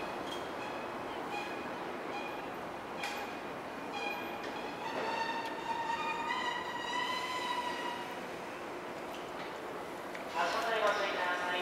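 A train rolls slowly along the track.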